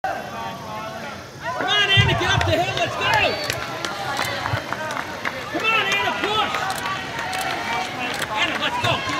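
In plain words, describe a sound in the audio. Spectators cheer and shout loudly nearby, outdoors.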